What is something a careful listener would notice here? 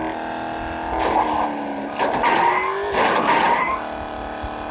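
A car crashes and scrapes against rocks.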